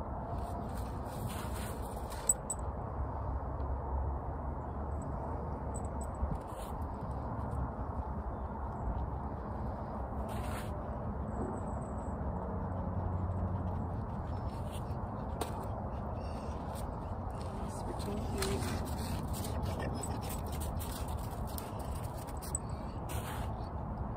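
Snow crunches underfoot as a person shifts their feet.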